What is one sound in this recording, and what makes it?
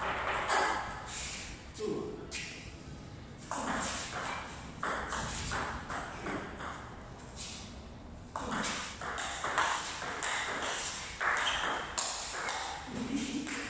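A ping pong ball clicks back and forth off paddles and a table in an echoing hall.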